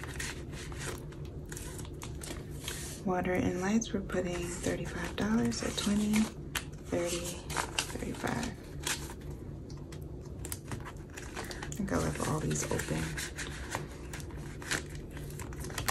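A plastic zip pouch crinkles as it is opened and closed.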